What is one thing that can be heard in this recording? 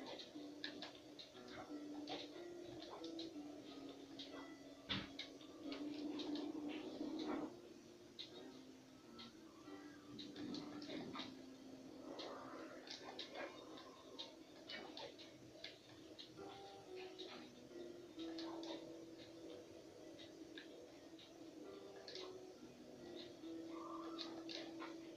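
Video game music plays with a steady melody.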